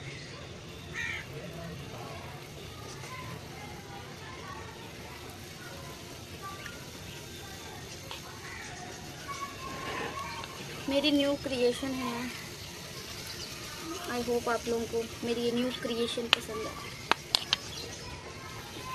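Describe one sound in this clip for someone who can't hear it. Oil sizzles and crackles in a frying pan.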